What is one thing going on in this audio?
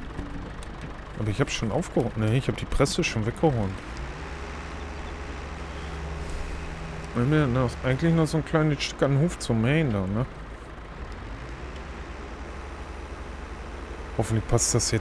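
A tractor engine rumbles steadily at idle.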